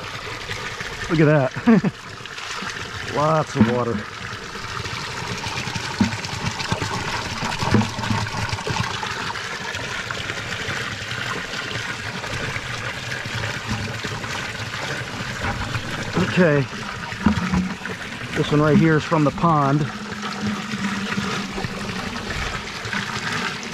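Water trickles and splashes into a plastic bucket.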